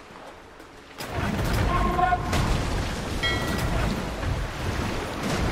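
Cannons fire from ships in heavy booms.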